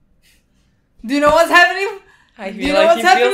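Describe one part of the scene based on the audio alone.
A young woman laughs loudly up close.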